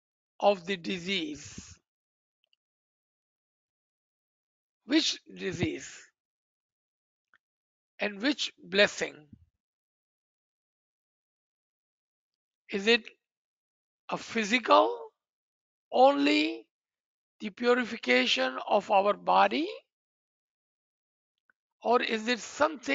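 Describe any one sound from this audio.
A man speaks calmly in short phrases through an online call, with long pauses.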